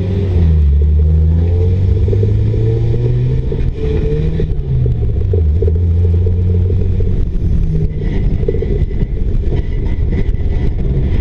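A race car engine roars from inside the stripped cabin, rising and dropping as the car accelerates and shifts.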